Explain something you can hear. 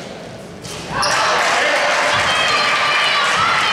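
Young women shout and call out across the court.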